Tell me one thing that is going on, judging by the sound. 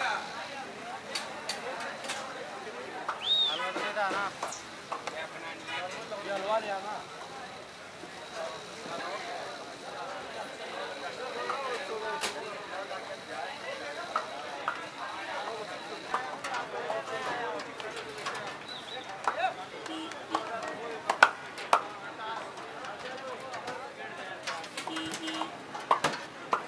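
Many men chatter nearby outdoors.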